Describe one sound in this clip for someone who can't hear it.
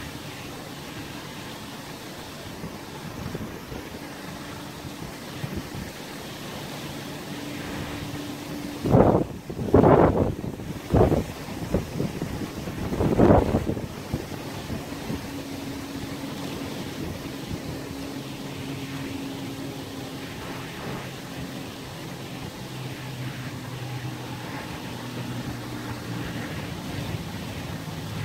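Small waves lap softly against the shore.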